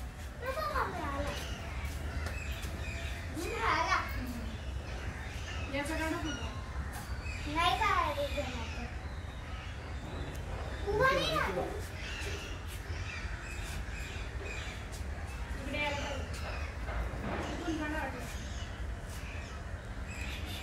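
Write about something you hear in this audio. A bear snuffles and rustles through grass nearby.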